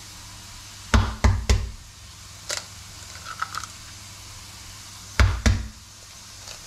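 An egg is cracked on the rim of a steel bowl.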